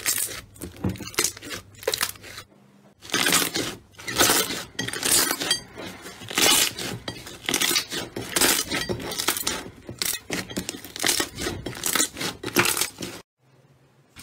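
Fingers squish and press foamy slime with sticky, crackling squelches.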